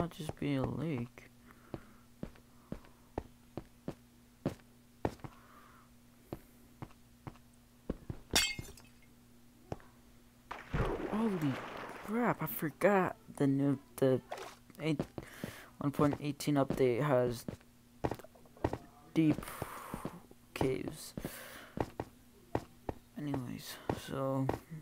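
Footsteps tap steadily on ice and snow.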